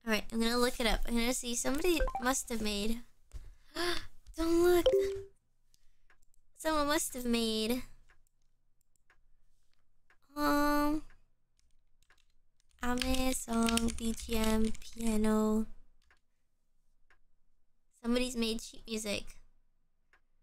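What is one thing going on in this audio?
A young woman talks animatedly and cheerfully into a microphone, in short bursts with pauses.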